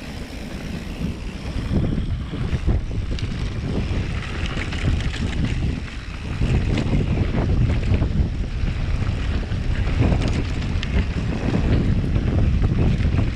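Bike tyres rumble and crunch over a dry dirt trail.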